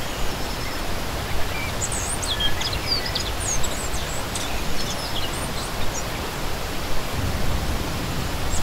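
A shallow stream burbles and splashes steadily over rocks.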